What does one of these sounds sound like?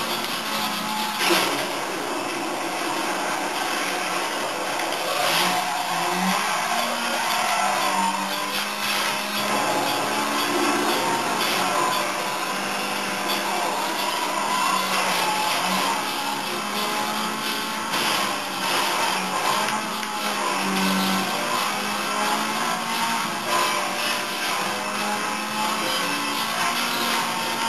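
A racing car engine roars and revs steadily from a television's speakers.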